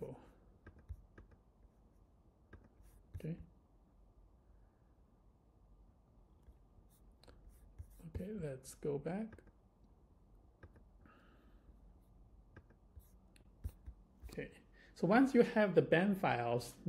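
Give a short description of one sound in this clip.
A young man speaks calmly and close to a microphone.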